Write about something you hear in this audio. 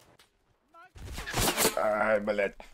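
Gunshots crack sharply nearby.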